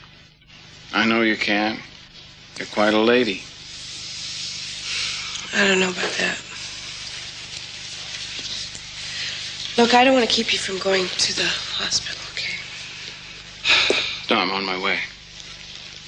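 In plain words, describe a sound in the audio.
A young woman speaks quietly and calmly.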